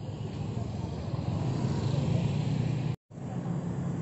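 Traffic hums and rumbles along a street.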